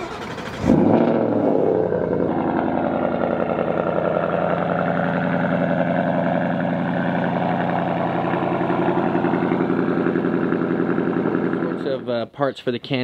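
A car engine idles with a loud, steady rumble.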